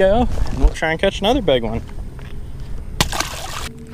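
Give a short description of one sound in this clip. A fish splashes into lake water.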